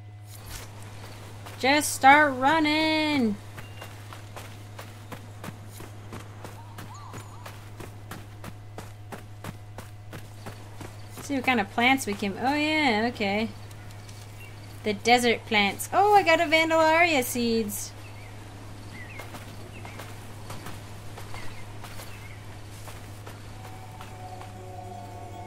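Footsteps crunch steadily on sand and gravel.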